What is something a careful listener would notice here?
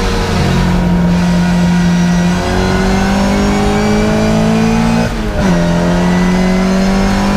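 A classic Mini race car's small four-cylinder engine roars under full throttle, heard from inside the car, its pitch climbing.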